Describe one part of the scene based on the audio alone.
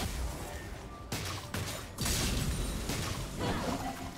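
Fantasy battle sound effects clash and burst in quick succession.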